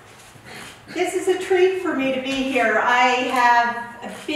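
A young woman speaks clearly and calmly.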